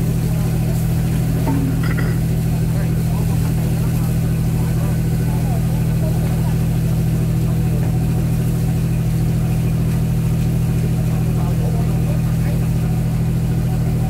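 Plastic baskets clatter as workers handle them.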